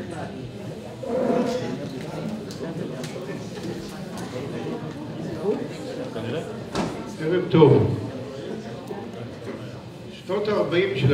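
A man reads out calmly into a microphone over a loudspeaker.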